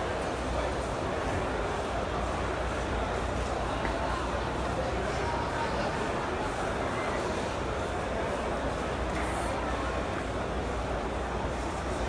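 A crowd murmurs steadily in a large hall.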